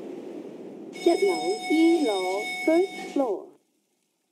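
An elevator chime rings out.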